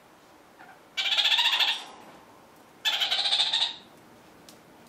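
A parrot gives loud harsh chattering calls.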